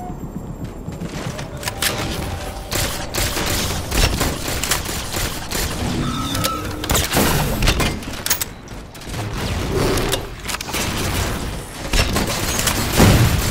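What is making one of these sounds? Guns fire in loud, rapid bursts.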